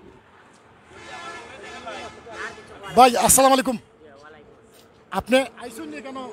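A young man laughs and talks excitedly close to a microphone.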